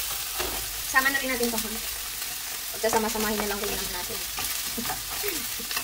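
Chopped pieces of meat slide off a board and drop into a sizzling pan.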